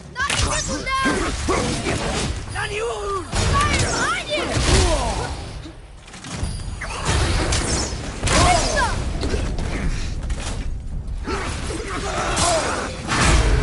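Weapons strike with heavy thuds in a video game battle.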